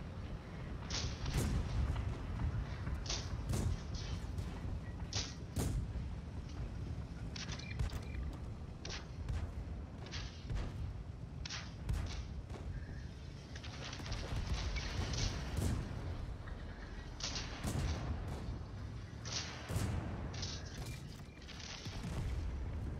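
Cannon shots and explosions boom again and again.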